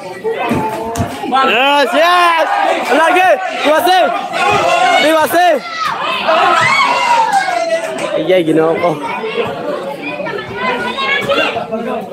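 Boxing gloves thud on bodies during sparring.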